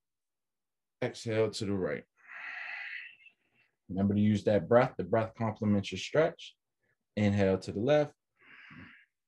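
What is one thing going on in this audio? A man speaks calmly through a computer microphone.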